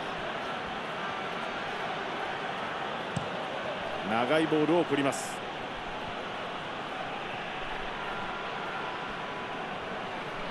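A stadium crowd murmurs and cheers steadily in the distance.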